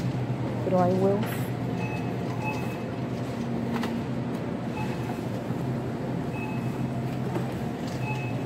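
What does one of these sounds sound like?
Refrigerated display cases hum steadily.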